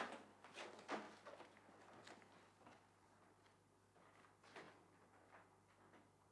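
Footsteps pad slowly across a floor, close by.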